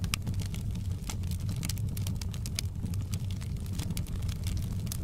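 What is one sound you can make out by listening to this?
Burning logs crackle and pop.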